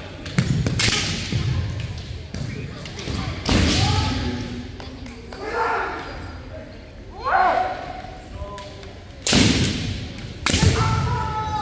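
Bamboo kendo swords clack together in a large echoing hall.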